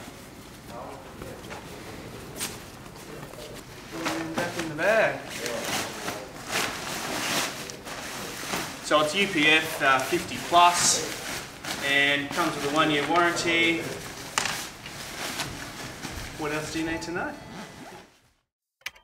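Nylon fabric rustles and crinkles as a bag is handled.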